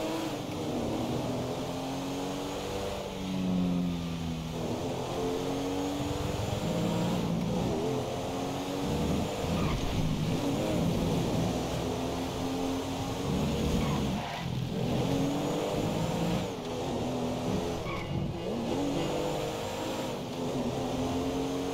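A sports car engine roars and revs up repeatedly.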